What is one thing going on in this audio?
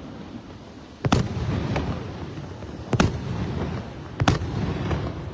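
Fireworks boom loudly overhead.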